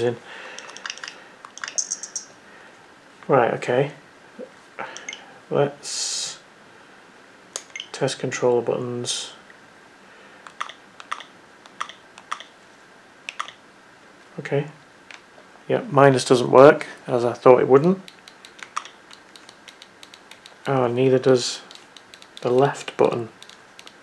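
Buttons on a handheld game controller click repeatedly.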